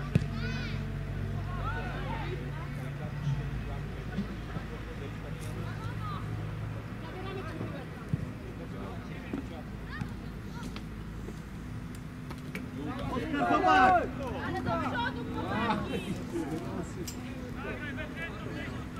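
Players call out and shout across an open outdoor pitch.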